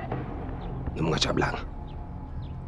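A man asks a short question in a low voice.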